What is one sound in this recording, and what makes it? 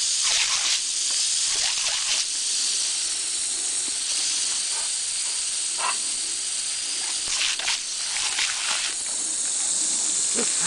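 Water splashes on a wet dog's fur.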